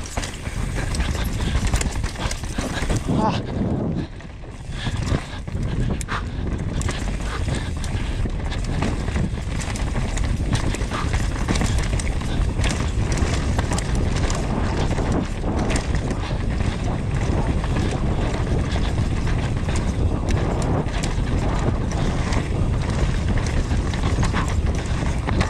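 Wind rushes loudly past a fast-moving mountain bike.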